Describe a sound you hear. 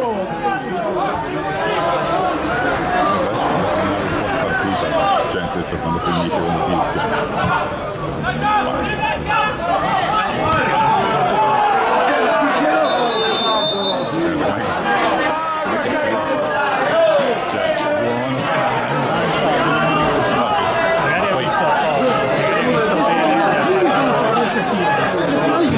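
Young men shout to each other across an open football pitch.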